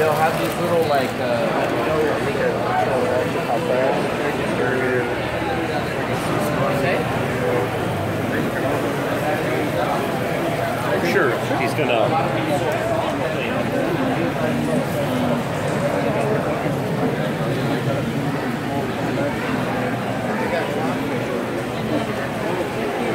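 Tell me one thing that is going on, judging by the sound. A crowd of men and women chatter all around in a large, echoing hall.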